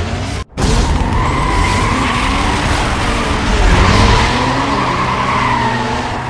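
Tyres screech as cars speed off.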